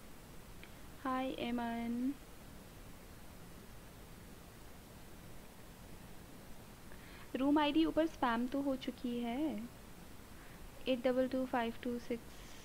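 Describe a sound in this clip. A young woman speaks in short bursts through a microphone.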